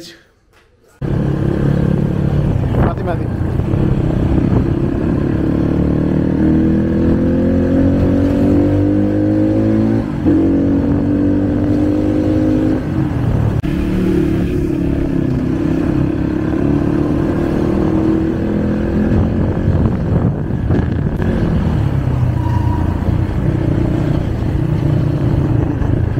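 A motorcycle engine runs and revs steadily.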